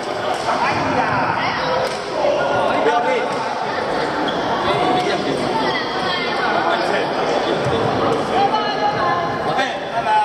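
Many voices chatter and call out in a large echoing hall.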